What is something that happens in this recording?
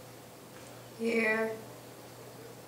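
A young woman speaks briefly in a bored tone.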